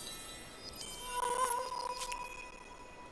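A short game chime rings out.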